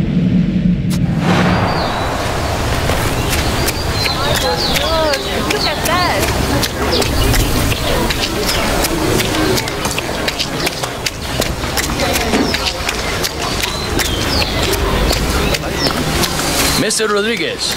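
Footsteps run quickly over a dirt road.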